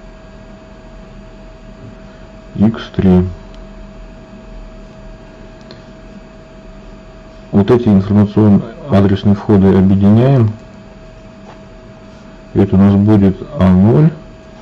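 A ballpoint pen scratches softly on paper.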